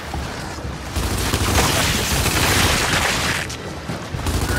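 Rapid gunfire rattles with a crackling roar.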